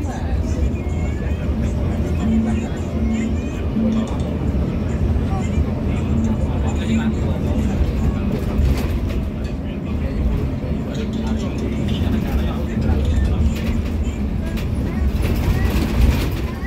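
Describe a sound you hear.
A bus engine rumbles steadily from inside the cabin.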